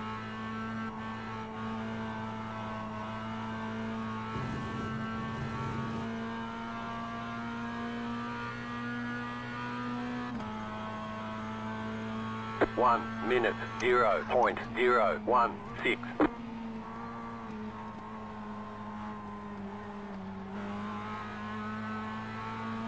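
A racing car engine drones steadily, shifting pitch with gear changes.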